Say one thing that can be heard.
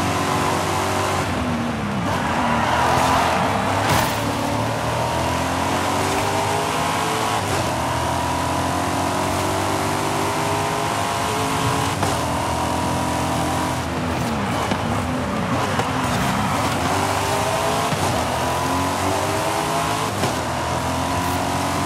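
A race car engine roars, revving up and down through gear changes.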